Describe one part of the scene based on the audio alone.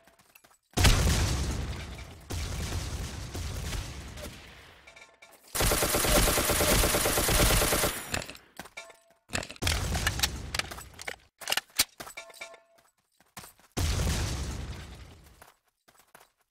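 Loud gunshots fire and echo, with bursts of rapid fire.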